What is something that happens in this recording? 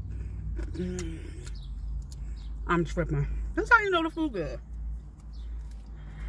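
A woman chews food with her mouth closed.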